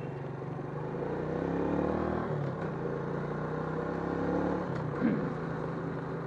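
A scooter engine revs up and down as it rides off.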